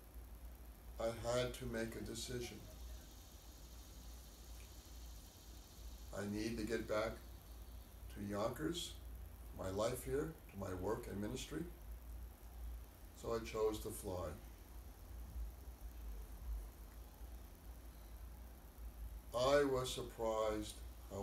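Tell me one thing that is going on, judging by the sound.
An elderly man speaks slowly and calmly, close by, with long pauses.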